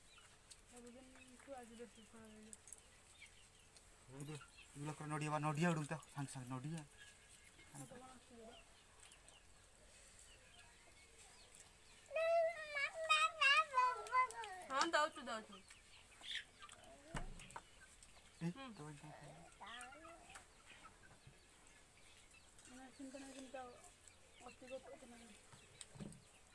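A woman talks nearby in a calm voice.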